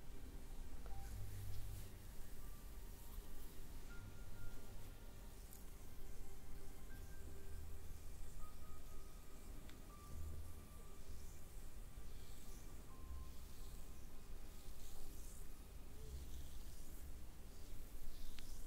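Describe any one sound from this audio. Hands rub softly over bare skin.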